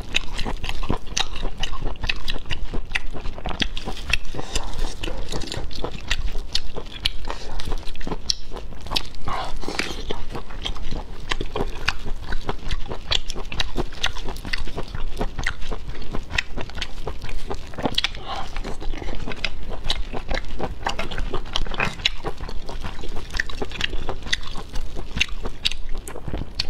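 Gloved fingers crack and pull apart shells with sharp clicks.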